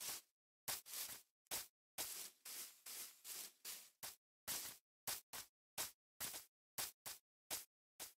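Footsteps rustle and crunch on grass in quick, uneven bursts.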